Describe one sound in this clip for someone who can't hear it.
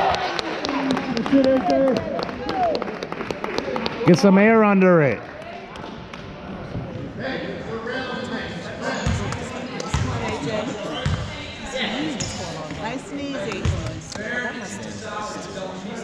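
Young players and spectators call out and chatter in a large echoing gym.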